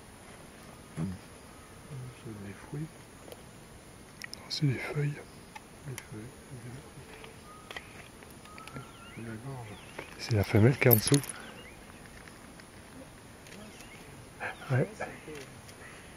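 A monkey gives deep, rough grunting calls in short bursts nearby.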